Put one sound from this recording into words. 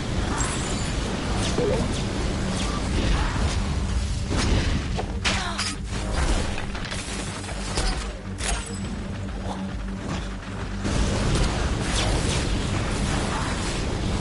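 Explosions boom and crackle with fire.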